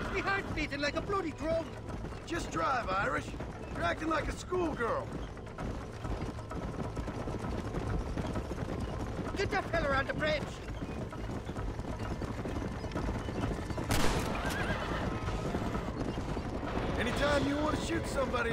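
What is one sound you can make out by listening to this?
A wagon rumbles and rattles along a dirt track.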